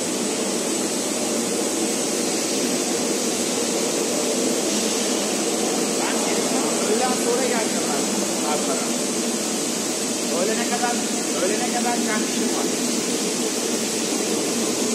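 A large industrial machine hums steadily.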